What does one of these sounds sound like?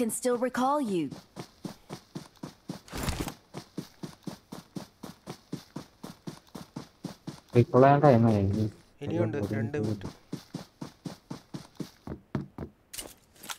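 Footsteps run quickly and evenly over the ground.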